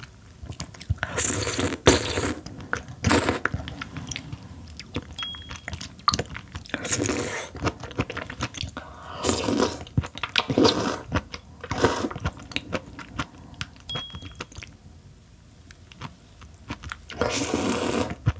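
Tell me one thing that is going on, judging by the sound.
A young woman slurps noodles loudly and wetly, close to a microphone.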